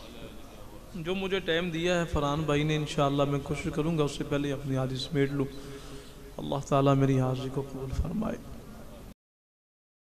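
A man recites melodiously into a microphone, heard through loudspeakers.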